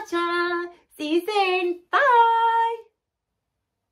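A young woman speaks cheerfully, close by, in a singsong voice.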